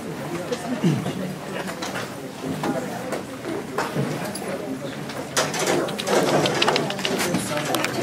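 A man speaks steadily, heard from across an echoing room.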